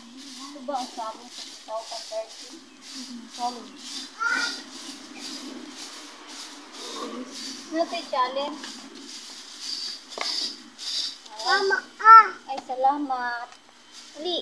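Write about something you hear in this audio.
A hand tool scrapes and digs into soil.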